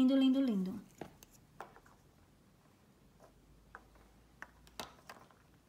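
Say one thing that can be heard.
Small plastic cosmetic cases click and tap together.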